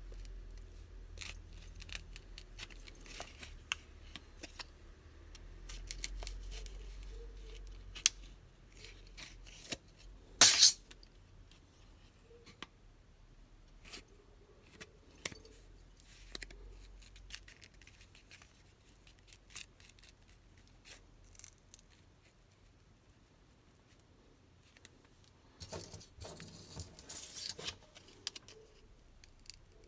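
A phone taps and clicks against a hand as it is handled.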